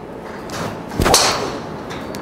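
A golf club strikes a ball with a sharp metallic crack.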